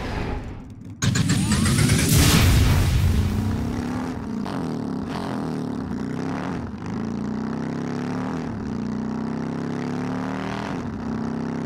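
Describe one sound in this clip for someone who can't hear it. A small racing car's engine hums and revs steadily.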